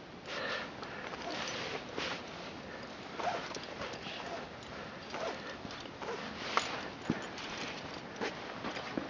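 Wind blows hard and gusts against the microphone, outdoors.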